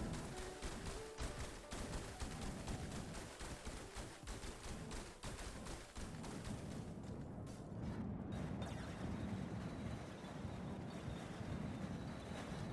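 Tyres crunch over sand.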